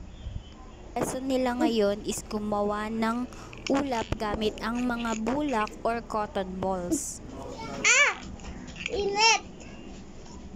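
A young child speaks in a drawn-out, sing-song voice close by.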